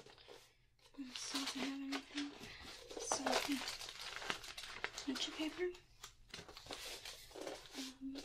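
Paper pages rustle and flap as a sketchbook is flipped through.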